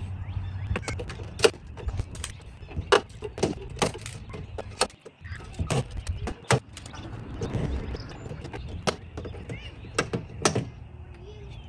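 Tools click and tap sharply against a metal door.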